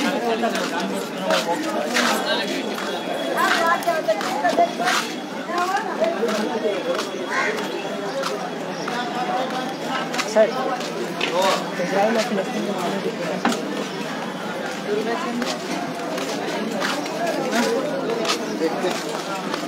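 Footsteps shuffle on pavement close by.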